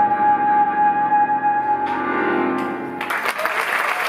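A trumpet plays a melody.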